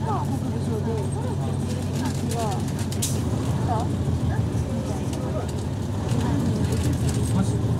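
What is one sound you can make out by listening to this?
A diesel city bus engine idles, heard from inside the bus.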